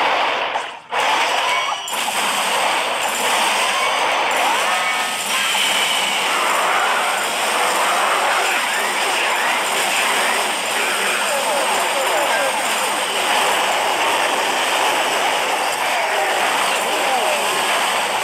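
Explosions and crackling fire sounds of a battle clatter on without a break.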